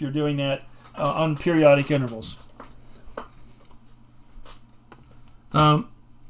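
An elderly man talks calmly into a close microphone.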